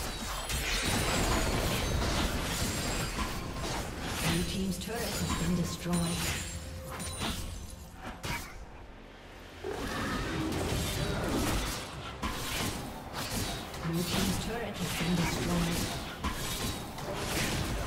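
Video game spells crackle and whoosh.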